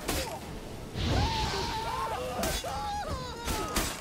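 Fire bursts with a whooshing roar.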